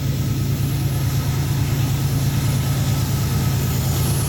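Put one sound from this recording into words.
Train wheels clatter and squeal on the rails.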